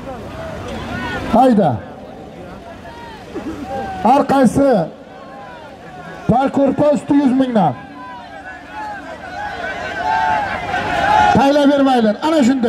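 A large outdoor crowd of men murmurs and chatters.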